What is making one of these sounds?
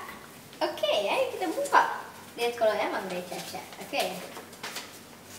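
A young boy speaks cheerfully close by.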